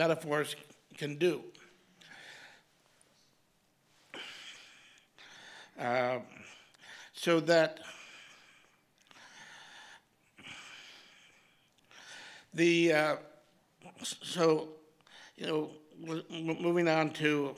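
An elderly man reads aloud slowly into a microphone, with long pauses.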